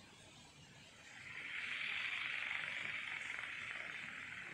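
A jet engine spools up into a rushing roar.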